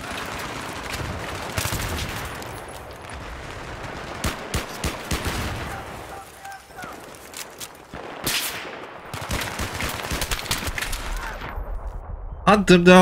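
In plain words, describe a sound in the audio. Gunshots fire rapidly in a video game.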